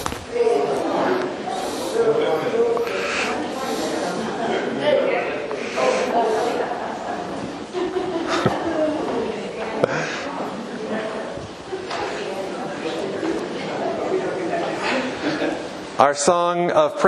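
Several men and women chat and greet one another.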